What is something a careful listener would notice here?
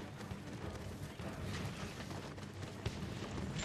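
Footsteps run and rustle through grass.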